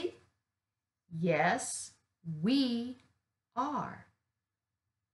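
An older woman speaks slowly and clearly close to the microphone, reading out short phrases.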